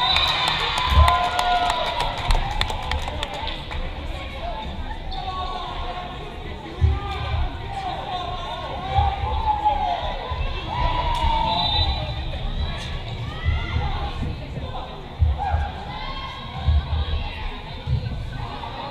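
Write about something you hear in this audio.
A volleyball is struck with sharp thumps.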